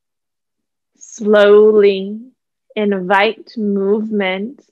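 A young woman speaks calmly and softly close to a microphone.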